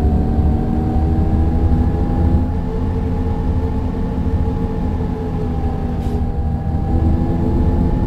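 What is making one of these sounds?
A faint whine of a bus's gearbox rises and falls slightly.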